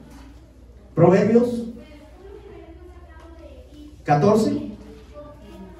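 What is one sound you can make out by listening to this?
A man reads aloud into a close microphone in short spoken phrases.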